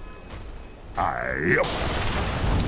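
A game spell whooshes with a sweeping, warbling tone.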